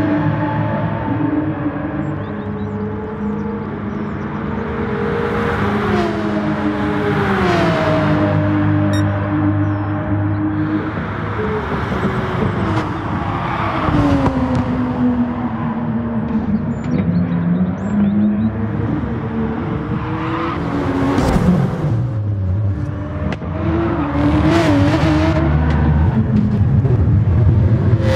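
A racing car engine roars, its pitch rising and falling as it speeds up and slows for corners.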